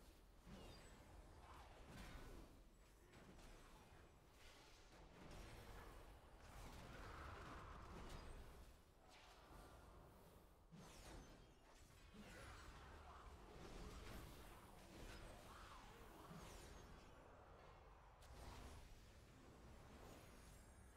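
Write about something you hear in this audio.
Spell effects whoosh, clang and burst in quick succession as game characters fight.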